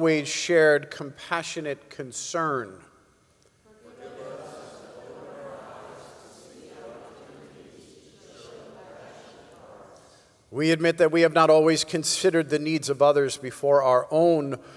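A man reads aloud through a microphone in a reverberant hall.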